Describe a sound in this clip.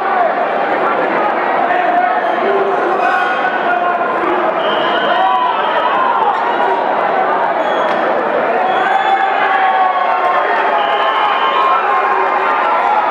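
A crowd of spectators shouts and cheers throughout, echoing in a large hall.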